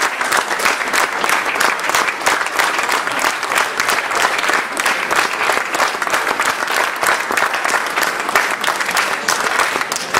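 An audience claps loudly and steadily in a hall.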